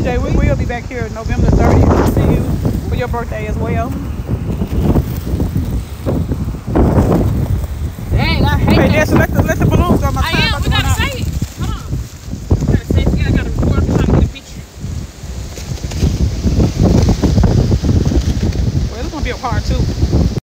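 A young woman speaks emotionally close by.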